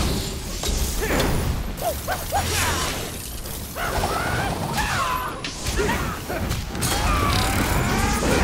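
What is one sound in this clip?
Sword blows slash and clang in a fight.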